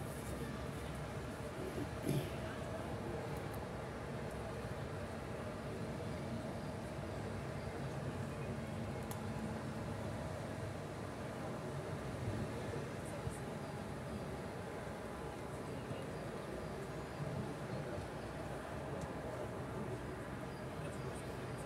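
Young men's voices call out faintly across an open field in the distance.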